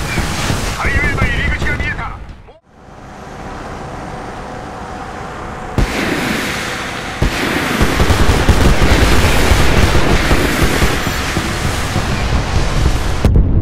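Flares launch with a hissing whoosh.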